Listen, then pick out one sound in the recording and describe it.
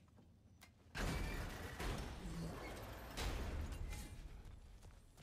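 A heavy gate scrapes and rumbles as it is lifted.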